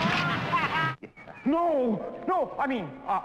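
A man shouts with excitement.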